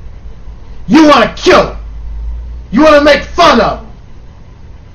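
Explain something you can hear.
A man speaks close to a microphone with emphasis, in short bursts.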